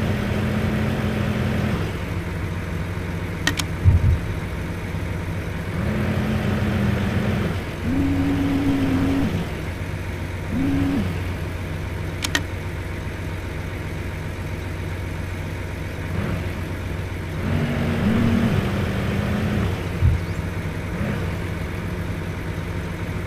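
A truck engine idles with a steady low rumble.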